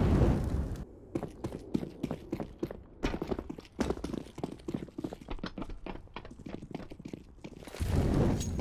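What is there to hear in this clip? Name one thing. Quick footsteps thud on a hard floor.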